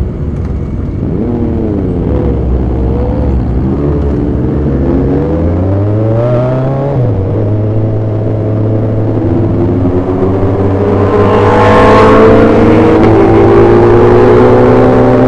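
A motorcycle engine revs up and climbs in pitch through the gears as it accelerates.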